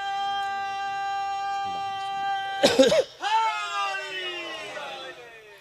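A young man sings a long, wavering lament loudly through a microphone and loudspeakers.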